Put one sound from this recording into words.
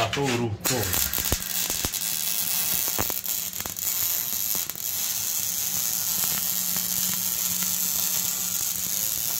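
An electric welder crackles and buzzes steadily, close by.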